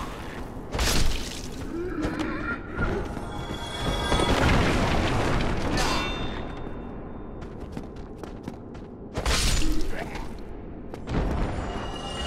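Weapons strike bodies with heavy thuds during a fight.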